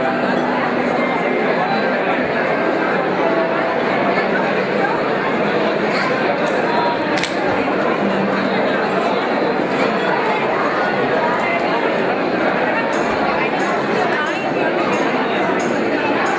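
A large crowd of men and women chatters loudly indoors.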